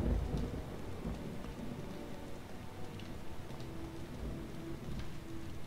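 A young man talks quietly into a microphone.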